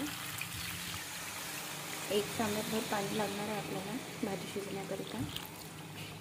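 Water pours from a pot into a pan of curry.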